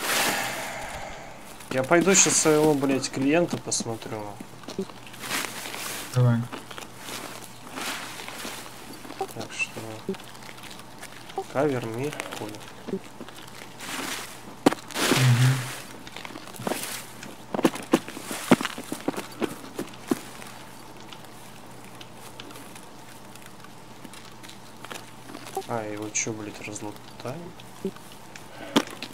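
Footsteps tread through grass and undergrowth.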